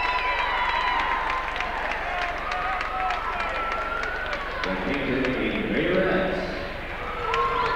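A spinning firework wheel whistles shrilly.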